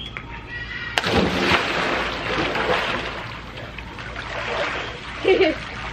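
Water churns and splashes as a boy moves in a pool.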